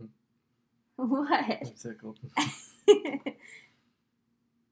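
A young man and woman laugh together up close.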